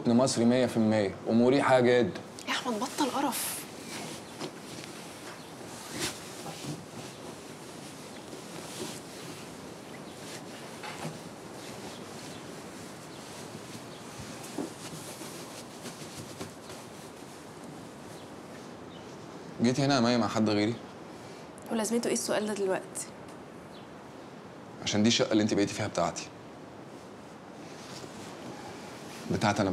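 Pillows and bedding rustle softly.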